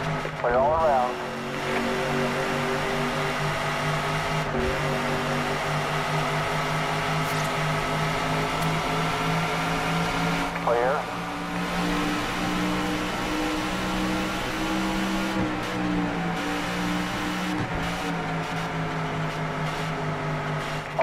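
A race car engine roars steadily at high speed.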